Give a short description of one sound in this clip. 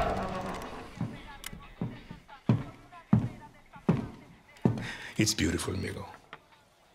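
Hard-soled shoes step slowly and heavily on a wooden floor.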